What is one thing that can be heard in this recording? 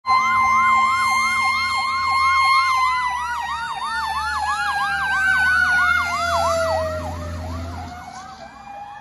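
A heavy truck engine rumbles as the truck drives past.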